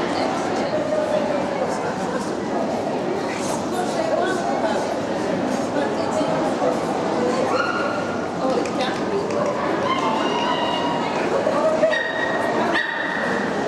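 Many people chatter in a large echoing hall.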